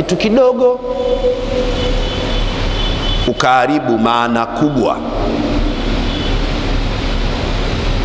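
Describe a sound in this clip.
A man speaks with animation through a microphone, his voice ringing in a reverberant room.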